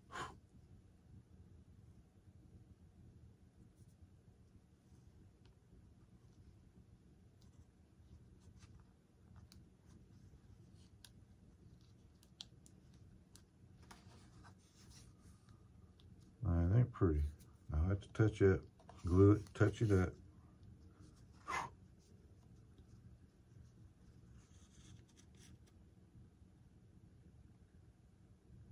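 Small plastic parts click and tap softly in a man's hands.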